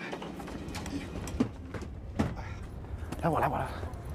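A man lifts a bag down from a luggage rack with a thump.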